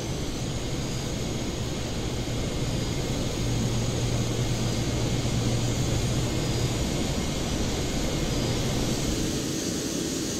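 A jet's engines hum low and steady, heard from inside the cockpit.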